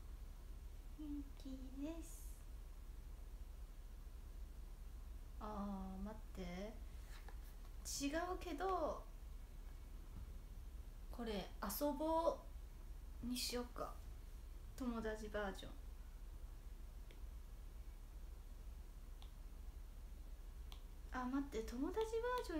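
A young woman speaks softly and playfully in short bursts, close by.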